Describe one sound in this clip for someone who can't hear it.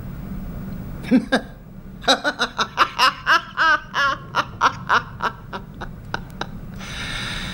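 An elderly man laughs loudly in bursts.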